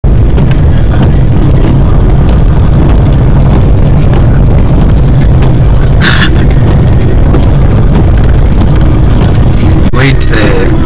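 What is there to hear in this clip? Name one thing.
Loud wind roars against a moving vehicle.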